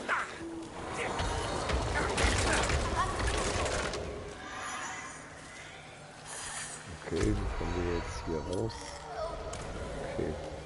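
Magic blasts crackle and whoosh in a fight.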